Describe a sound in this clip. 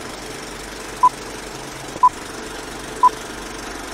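A short electronic beep sounds once a second, counting down.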